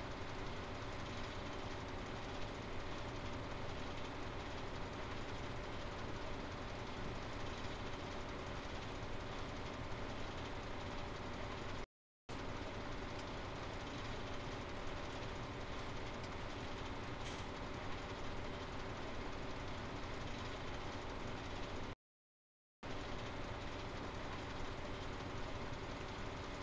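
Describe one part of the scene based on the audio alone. A harvester engine drones steadily.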